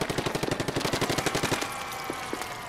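A toy-like gun fires in a rapid burst of spurts.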